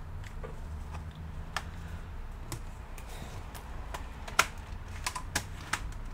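Plastic parts click and snap as a cover is pressed into place.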